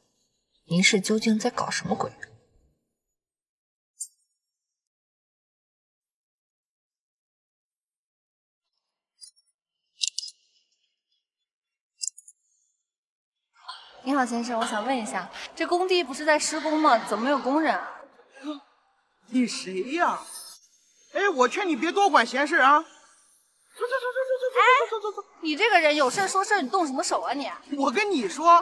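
A young woman speaks up close, puzzled and then sharply indignant.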